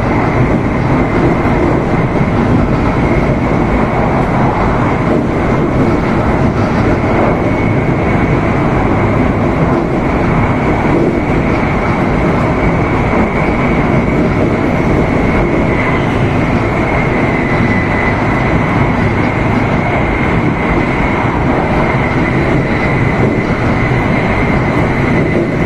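A high-speed train rumbles and hums at speed, heard from inside the carriage.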